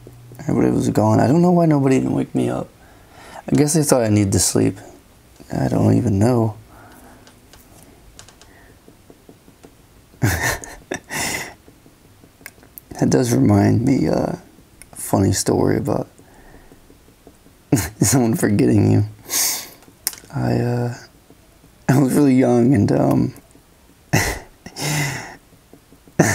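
A felt-tip pen scratches and taps softly on paper.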